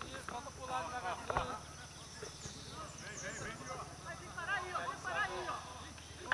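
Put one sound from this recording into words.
Several men shout to each other in the distance, outdoors.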